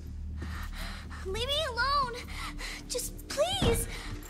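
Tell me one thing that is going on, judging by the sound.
A young girl cries out in distress, pleading.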